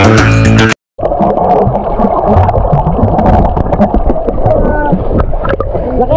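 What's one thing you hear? Water bubbles and rushes, heard muffled underwater.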